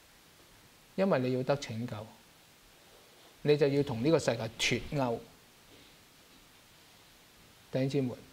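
A middle-aged man speaks calmly and with emphasis into a microphone, in short phrases with pauses.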